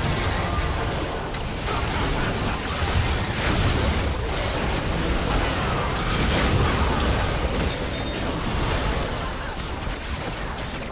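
Magic spells crackle and burst in a hectic fantasy battle.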